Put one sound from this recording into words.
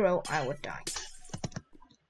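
A block breaks with a short crunch.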